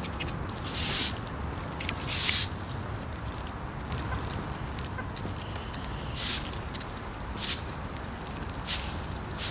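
Footsteps scuff on pavement outdoors.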